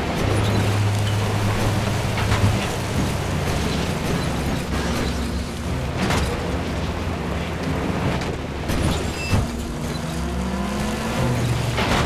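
A vehicle engine hums steadily as it drives over rough ground.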